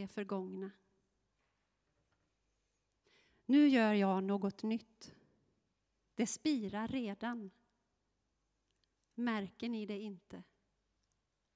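A woman reads aloud calmly through a microphone.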